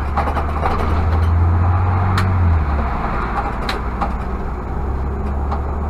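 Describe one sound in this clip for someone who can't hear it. Tyres rumble on the road.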